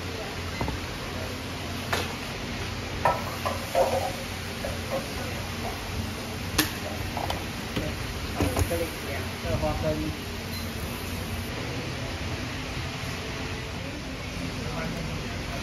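Metal waffle iron lids clank open and shut.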